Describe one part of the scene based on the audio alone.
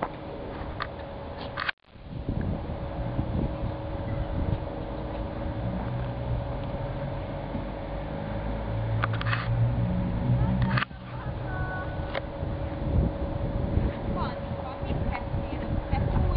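Two small dogs run and scuffle on grass.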